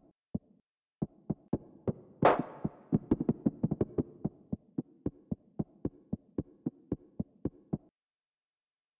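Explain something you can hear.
Footsteps tap in an even walking rhythm.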